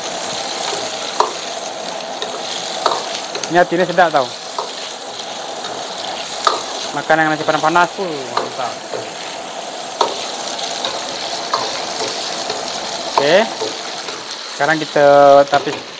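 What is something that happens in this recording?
A metal ladle scrapes and knocks against a wok.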